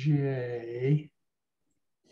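An elderly man speaks in a drawn-out, sing-song voice over an online call.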